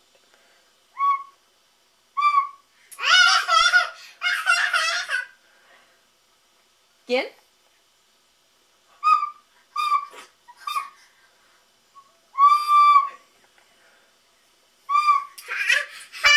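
A recorder toots short, wavering notes.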